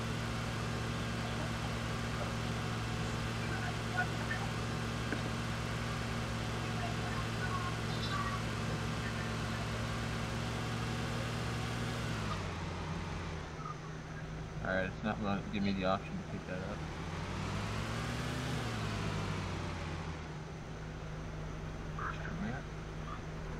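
A car engine hums steadily, dropping and rising in pitch.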